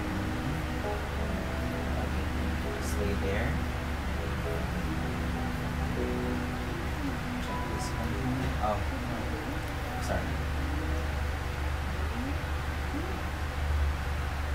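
A young man speaks quietly nearby.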